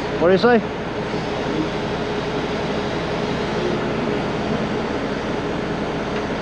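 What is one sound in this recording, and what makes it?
A heavy truck engine idles steadily nearby.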